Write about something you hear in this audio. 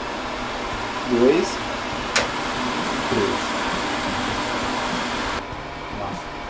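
A range hood fan whirs steadily, then shuts off.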